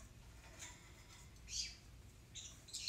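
A brush scrapes softly across a canvas.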